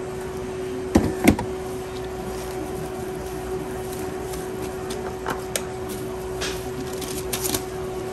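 Paper rustles as a sandwich is wrapped.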